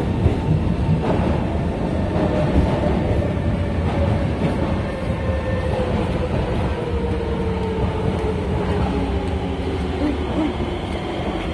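Train brakes squeal with a falling whine.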